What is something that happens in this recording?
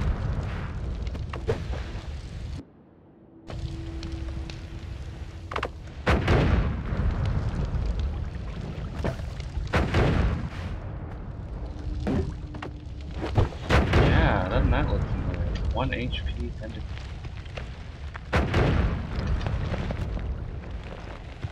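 Fire crackles steadily.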